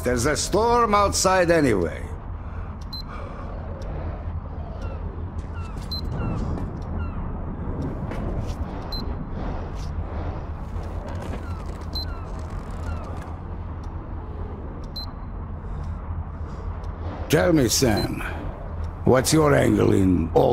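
An older man speaks calmly in a gruff voice.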